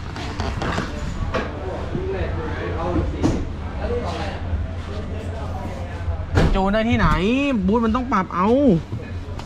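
A man talks close by with animation.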